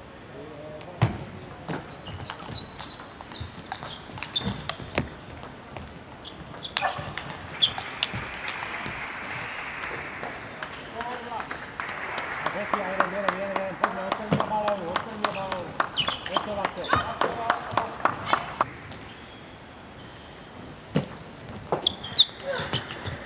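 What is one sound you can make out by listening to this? A table tennis ball clicks quickly back and forth off paddles and a table.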